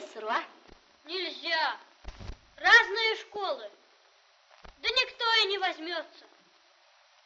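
A boy speaks with animation nearby.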